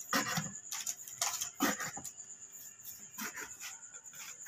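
A knife chops through soft food on a wooden board.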